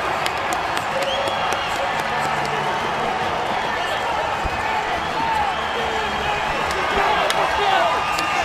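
A large stadium crowd cheers loudly and steadily.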